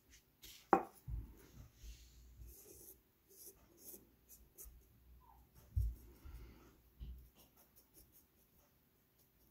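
A metal tool scrapes and taps against a glass dish.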